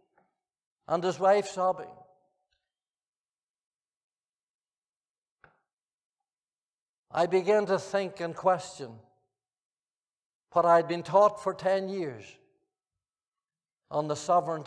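An elderly man speaks calmly through a microphone, pausing between phrases.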